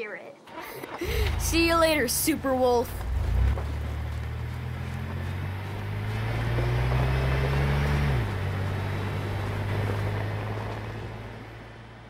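A pickup truck's engine rumbles steadily and drives off.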